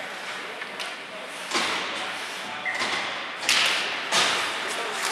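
Ice skates scrape and carve across the ice in a large echoing rink.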